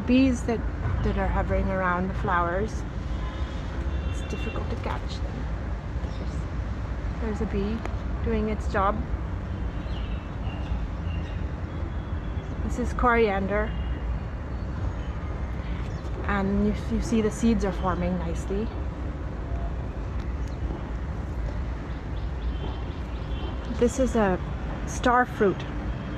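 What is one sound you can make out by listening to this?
A young woman speaks calmly through an online call, in short bursts with pauses.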